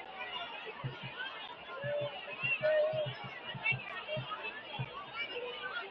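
A large crowd chatters and calls out across an open stadium.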